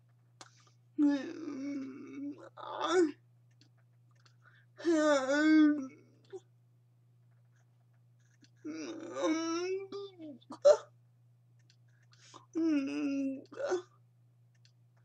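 A young woman speaks with animation close to a microphone, in bursts with pauses.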